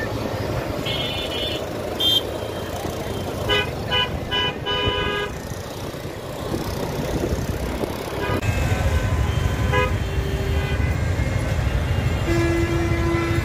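Traffic rumbles steadily along a road outdoors.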